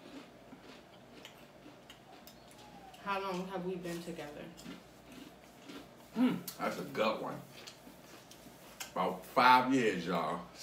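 Crisp chips crunch as they are eaten.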